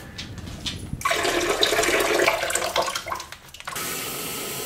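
Water pours from a kettle into a mug.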